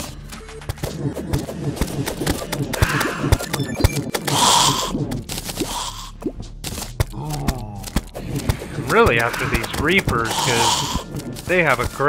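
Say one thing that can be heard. Rapid sword swings and hits clatter in a video game.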